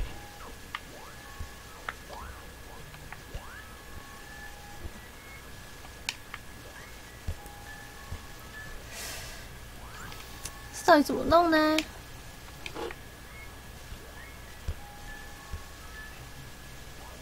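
Short electronic blips and chimes sound again and again.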